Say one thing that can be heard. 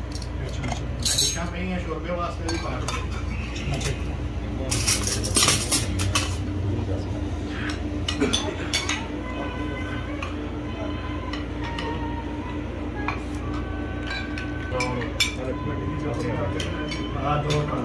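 Dishes and spoons clink as plates are passed around.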